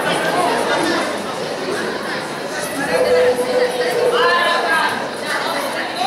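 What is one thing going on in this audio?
A woman speaks cheerfully up close.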